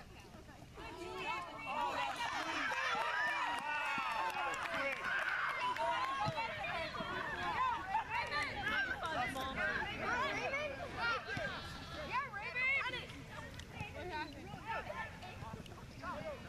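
Young players and spectators shout and call out across an open field.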